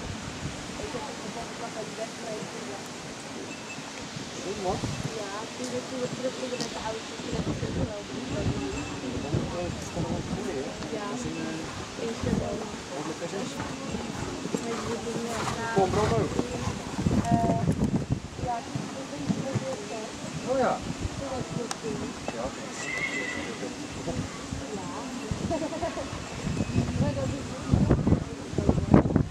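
Adults chat nearby in lively voices.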